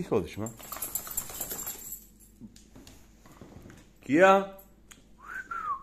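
A dog's claws click on a tiled floor as it walks away.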